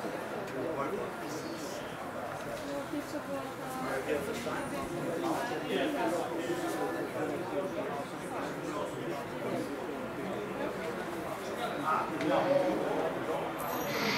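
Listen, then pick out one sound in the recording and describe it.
Young men and women chatter and call out at a distance outdoors.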